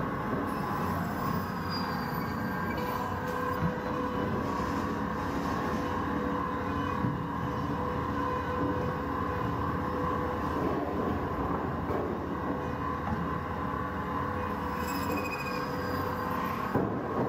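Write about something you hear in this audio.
A band saw whirs steadily as it cuts through frozen fish.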